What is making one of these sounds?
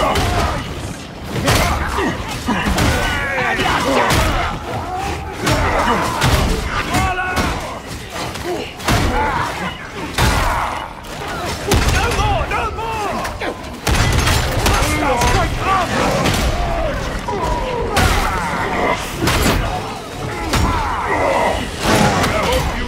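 Loud impacts and explosions crash and rumble.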